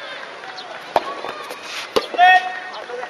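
Tennis balls are struck by rackets in the distance.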